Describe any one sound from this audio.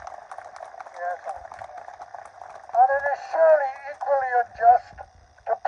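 An elderly man speaks loudly through a megaphone outdoors.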